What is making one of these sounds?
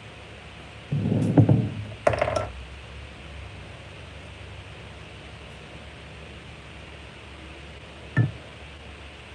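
A metal tool clinks against a glass jug.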